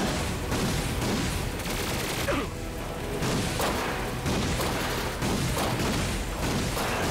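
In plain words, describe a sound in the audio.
A flying machine whirs and blasts in a game.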